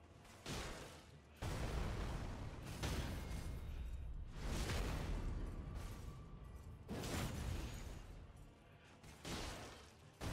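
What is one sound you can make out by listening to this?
Swords clash and strike against armour with sharp metallic hits.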